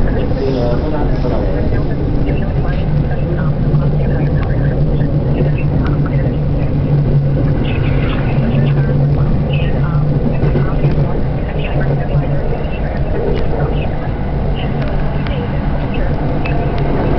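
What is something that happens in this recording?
Train wheels click and rattle on the rails.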